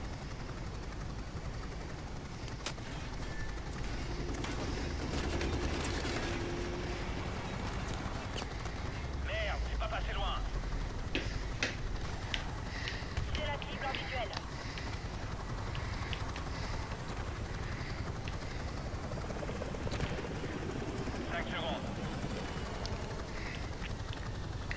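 Helicopter rotors thump steadily close by.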